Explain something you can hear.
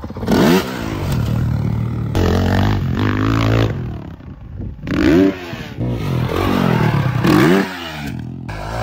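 A dirt bike engine revs hard and loud close by, rising and falling in pitch.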